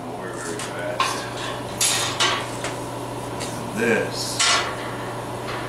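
Metal bars clank against a steel table.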